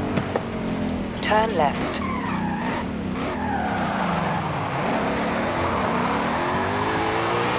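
Car tyres screech while skidding.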